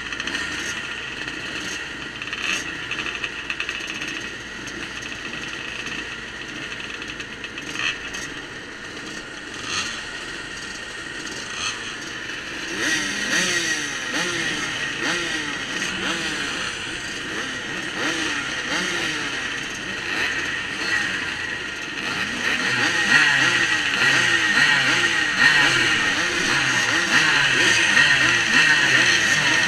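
Several motorbike engines idle and rev loudly nearby.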